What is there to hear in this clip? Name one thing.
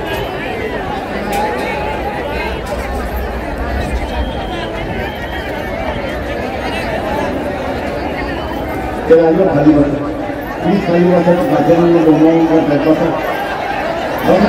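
An elderly man speaks forcefully through a loudspeaker, echoing outdoors.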